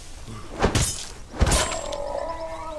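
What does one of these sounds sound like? A blade swings and strikes hard twice.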